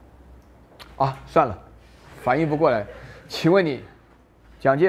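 A middle-aged man lectures through a microphone, speaking calmly with pauses.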